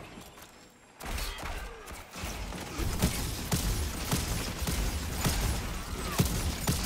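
Gunfire cracks.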